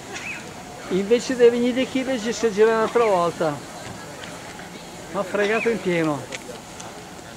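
A steam locomotive's whistle blows loudly twice, its pitch sliding down.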